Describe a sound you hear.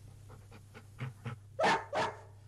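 A young man laughs softly close to a microphone.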